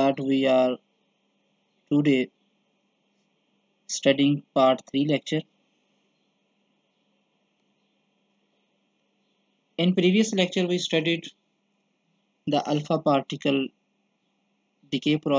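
A man speaks calmly into a microphone, in short bursts with pauses.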